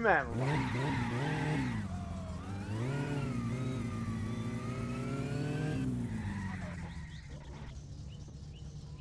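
A car engine revs hard and climbs in pitch through the gears, then eases off.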